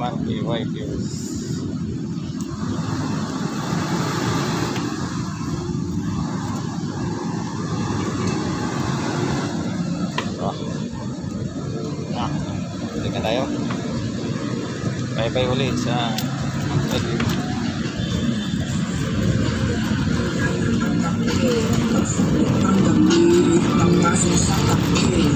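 A bicycle's wheels roll over pavement with a faint rattle.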